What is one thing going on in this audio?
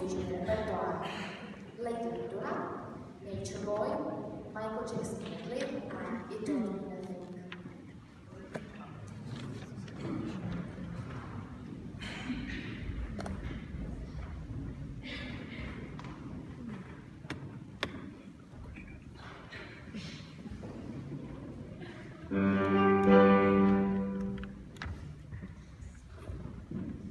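A mixed choir sings in a large echoing hall.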